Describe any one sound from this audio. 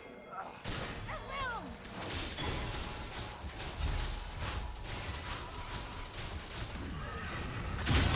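Game sound effects of spells and hits crackle and whoosh.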